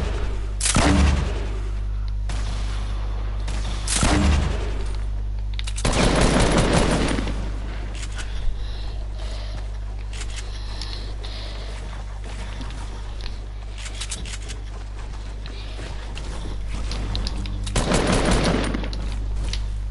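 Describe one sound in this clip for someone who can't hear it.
Gunshots crack in a video game.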